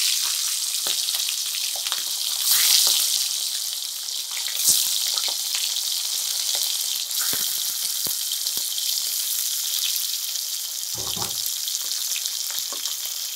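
Fish sizzles and crackles steadily in hot oil.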